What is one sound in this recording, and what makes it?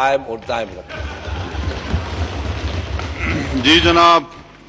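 A crowd of men murmurs and chatters.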